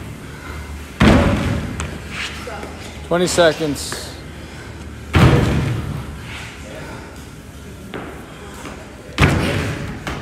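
Feet land with heavy thuds on a rubber floor.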